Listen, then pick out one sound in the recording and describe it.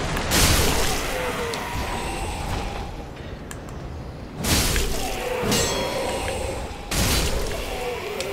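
A heavy sword swings and strikes with loud whooshing impacts.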